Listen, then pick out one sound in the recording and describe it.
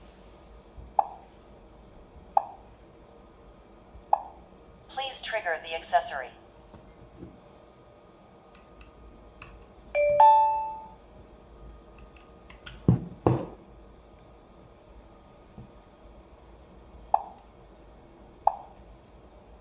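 A touch panel gives short electronic beeps.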